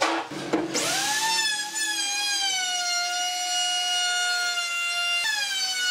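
A handheld electric router whines steadily as it cuts wood.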